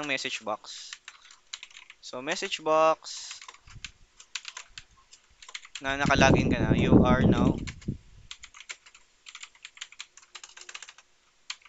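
Keyboard keys clack in quick bursts of typing.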